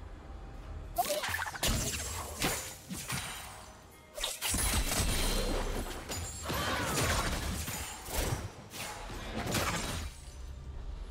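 Game spells blast and crackle in a fight.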